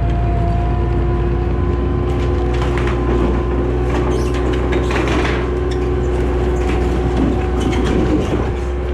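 A loader's diesel engine rumbles steadily close by.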